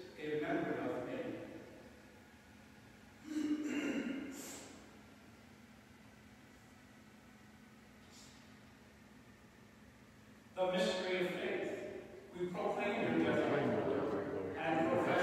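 A man speaks calmly and slowly, with a reverberant echo as in a large hall.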